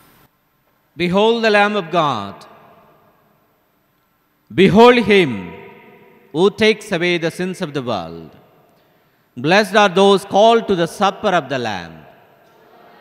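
A man chants into a microphone, echoing in a large hall.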